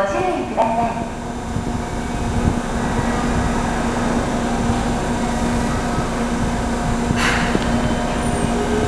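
A subway train hums and rumbles steadily in an echoing underground station.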